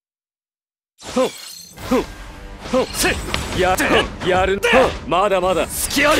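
A magical energy burst whooshes and crackles loudly.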